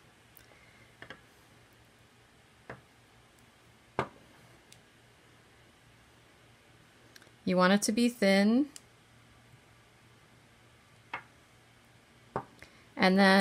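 Hands lightly tap and set down thin strips on a hard surface.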